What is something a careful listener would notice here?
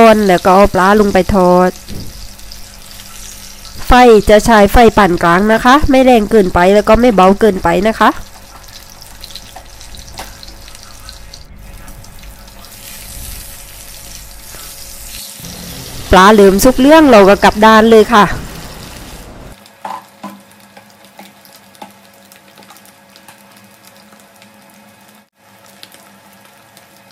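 Oil sizzles and bubbles steadily in a frying pan.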